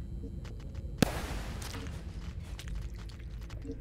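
A sharp slashing whoosh cuts through the air.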